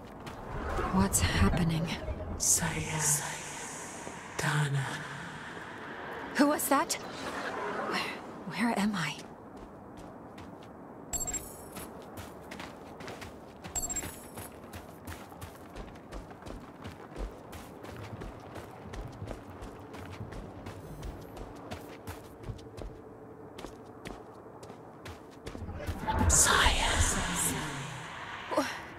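A young woman speaks in a puzzled voice.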